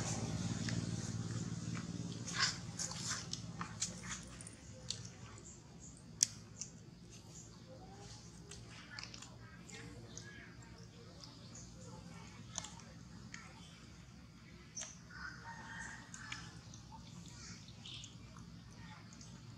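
Fruit peel rustles and tears in a monkey's hands.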